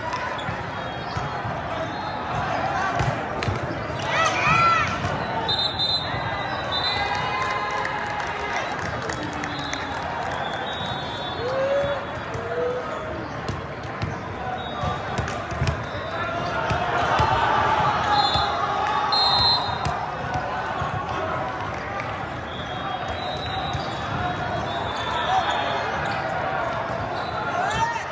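Players and spectators shout and chatter throughout a large echoing hall.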